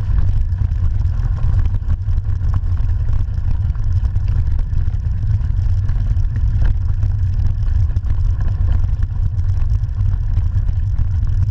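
Wind rumbles loudly against a moving bicycle.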